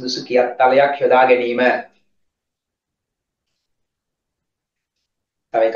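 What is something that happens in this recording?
A man reads aloud in a clear, steady voice, close to a microphone.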